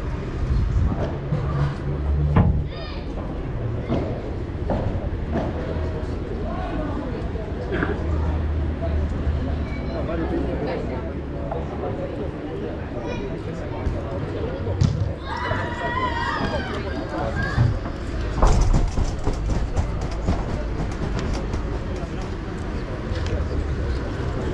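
Paddle rackets strike a ball with sharp pops.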